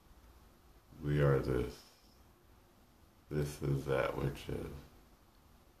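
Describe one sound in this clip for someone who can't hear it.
A man speaks calmly and softly, close by.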